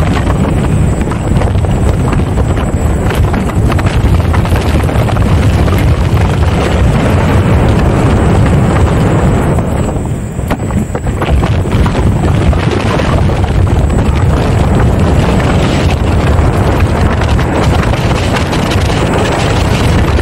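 Wind roars loudly against the microphone.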